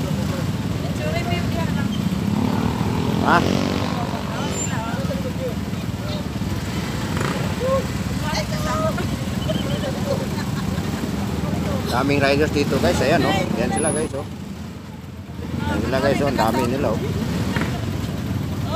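A woman talks close by with animation.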